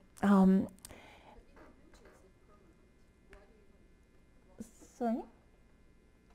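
An elderly woman speaks warmly into a microphone, with short pauses.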